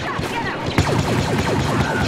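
Laser rifle shots fire in quick bursts.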